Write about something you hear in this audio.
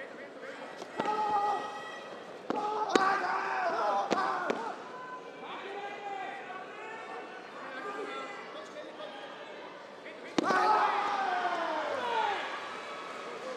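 Young men shout sharply as they fight.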